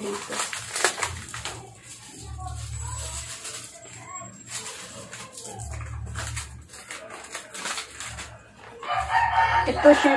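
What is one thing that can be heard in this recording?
Paper and plastic packaging rustles and crinkles in hands.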